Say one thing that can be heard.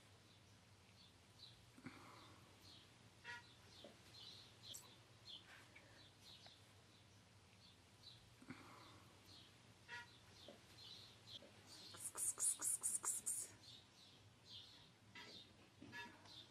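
A cat laps milk from a bowl.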